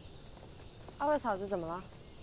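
A young woman asks a question calmly, close by.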